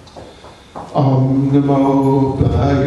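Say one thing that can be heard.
An elderly man sings a long, steady note through a microphone.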